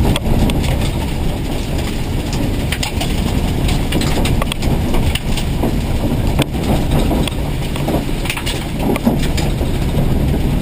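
A rally car engine roars loudly at high revs from inside the cabin.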